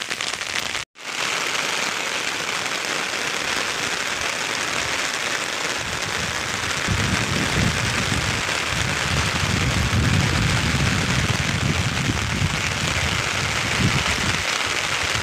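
Heavy rain pours steadily and patters on an umbrella.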